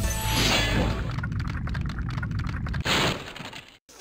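A crystal statue shatters with a burst of tinkling shards.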